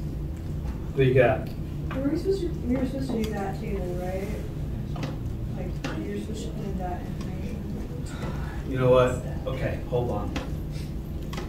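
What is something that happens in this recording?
A middle-aged man speaks calmly to a room, heard from a distance in a slightly echoing space.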